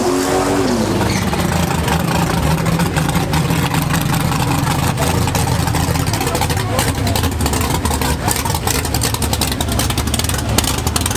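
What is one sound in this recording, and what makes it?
A car engine rumbles deeply at idle close by.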